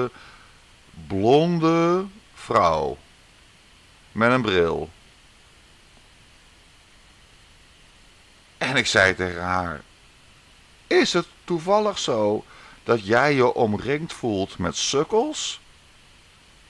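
A man speaks softly and close by, with pauses.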